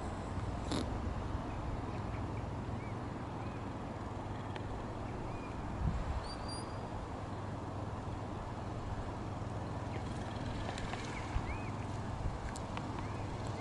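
A quad bike engine hums in the distance.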